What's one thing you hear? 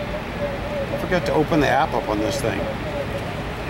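Men talk quietly in the distance outdoors.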